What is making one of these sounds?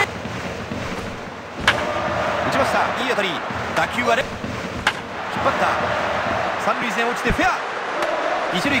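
A stadium crowd cheers steadily.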